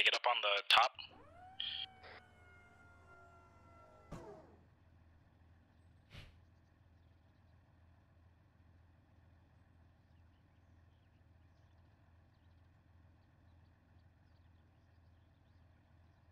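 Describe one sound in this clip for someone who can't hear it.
An engine idles with a low, steady hum.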